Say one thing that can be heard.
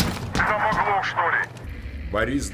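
A man speaks quickly over a walkie-talkie.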